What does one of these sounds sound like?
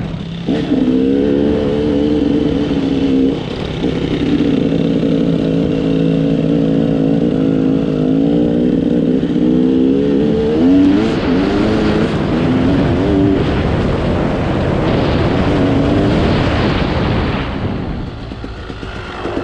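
A dirt bike engine drones steadily up close, its pitch rising and falling with the throttle.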